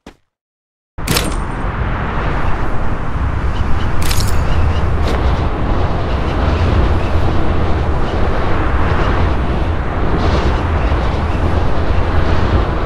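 Wind rushes loudly and steadily during a fall through the air.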